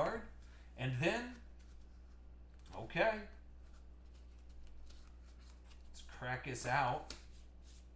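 Hands rummage through cards in a box.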